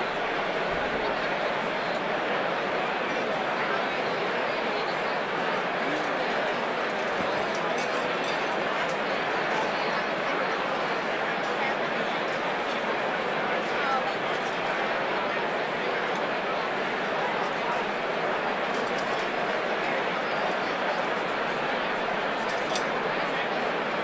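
A large crowd chatters at once, echoing through a big hall.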